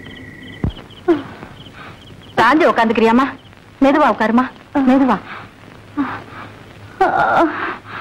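A woman wails and sobs loudly in distress.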